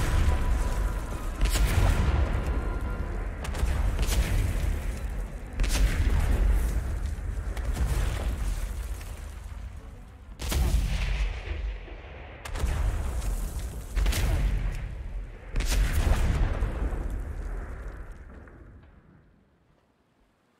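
Explosions boom again and again, each rumbling away.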